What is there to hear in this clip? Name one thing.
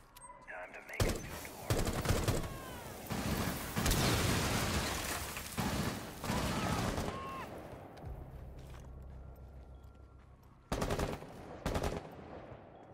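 Gunshots crack in loud bursts.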